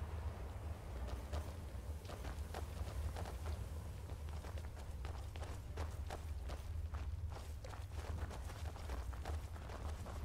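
Footsteps tread steadily on stone.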